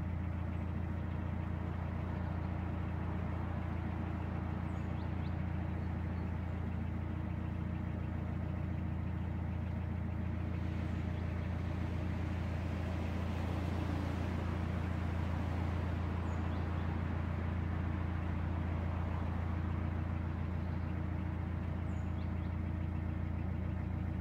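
A boat's diesel engine chugs steadily close by.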